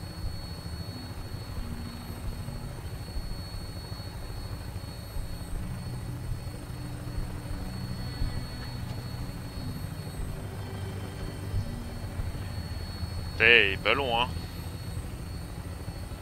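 A helicopter's engine and rotor drone low and steadily.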